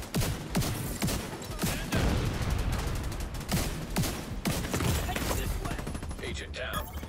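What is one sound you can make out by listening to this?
Gunfire rattles rapidly.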